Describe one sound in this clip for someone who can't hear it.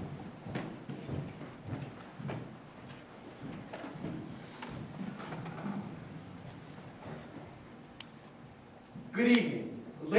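A soft murmur of people talking quietly fills the room.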